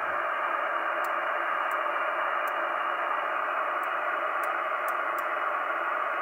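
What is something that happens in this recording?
A channel knob clicks as it turns.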